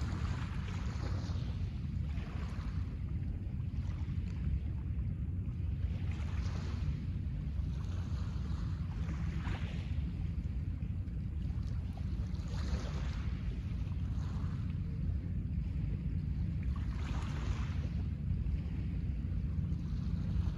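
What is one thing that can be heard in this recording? Small waves wash gently onto a pebble shore in slow, regular swells.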